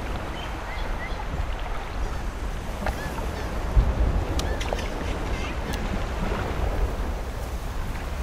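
Birds chirp now and then in the distance.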